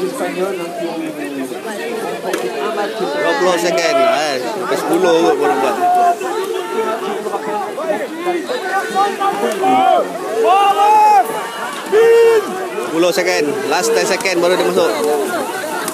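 Young men shout to each other loudly outdoors.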